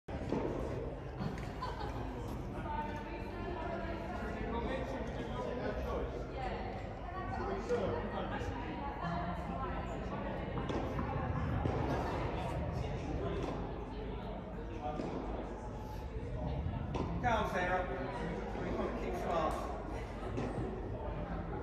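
Tennis balls are struck with rackets and bounce on the court.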